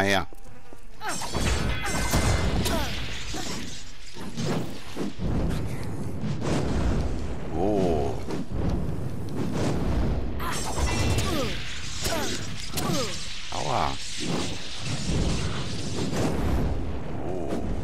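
Weapons swing and strike with sharp whooshes.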